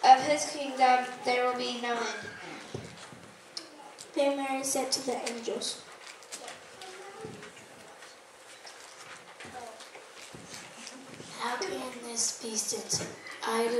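A group of children sings together in an echoing room.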